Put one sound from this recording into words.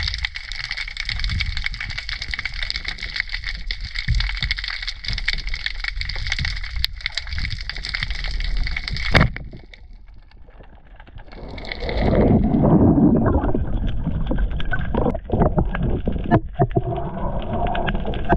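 Water rushes and gurgles in a muffled, underwater hush.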